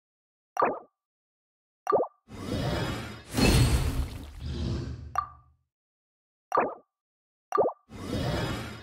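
Short game menu clicks sound.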